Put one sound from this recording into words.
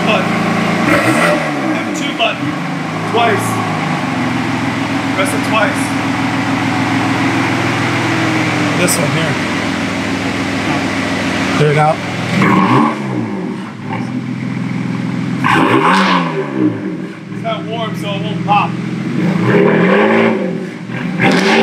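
A BMW M3's twin-turbo inline-six is revved in short blips through a performance exhaust.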